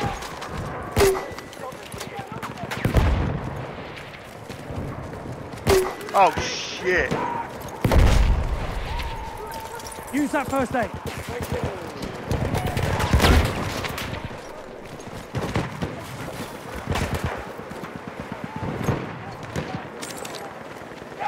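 Gunshots crack loudly with booming echoes.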